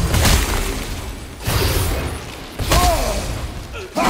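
An arrow whooshes from a bow.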